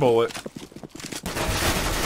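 A rifle's parts click and rattle as it is handled.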